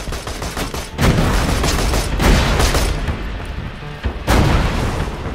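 Gunfire booms in loud bursts.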